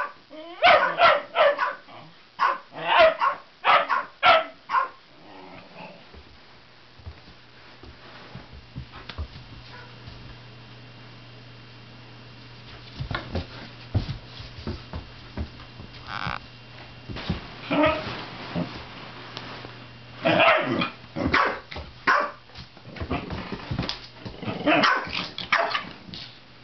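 Dogs growl and yap as they play-fight close by.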